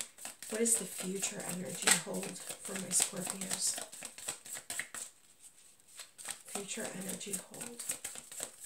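Playing cards riffle and slap softly as a hand shuffles them.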